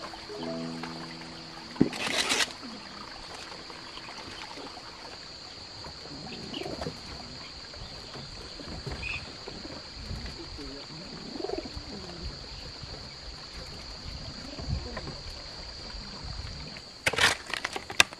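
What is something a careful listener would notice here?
A hoe scrapes and chops through loose soil.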